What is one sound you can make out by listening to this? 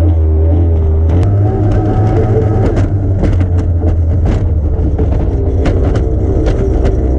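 A powerboat engine roars loudly and steadily.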